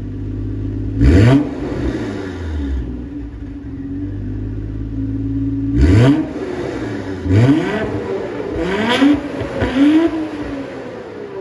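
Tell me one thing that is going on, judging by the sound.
A car engine revs up sharply several times through a loud exhaust.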